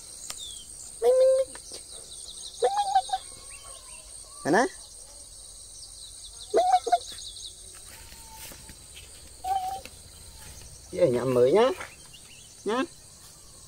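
A puppy whimpers and yelps in short, high cries.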